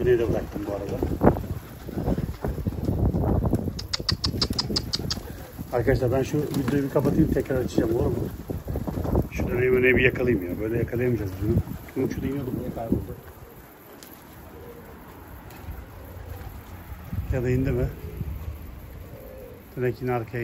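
Pigeons coo close by.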